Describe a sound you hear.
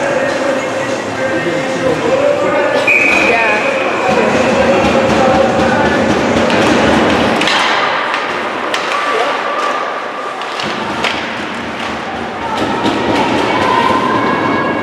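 Spectators chatter nearby in an echoing arena.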